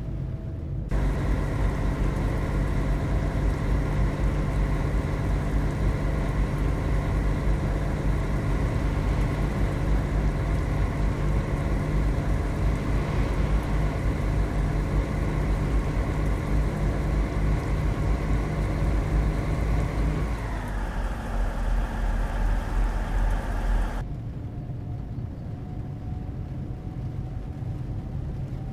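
A heavy bus engine drones steadily, then its pitch drops and it grows quieter.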